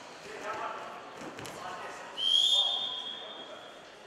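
A wrestler thumps down onto a mat.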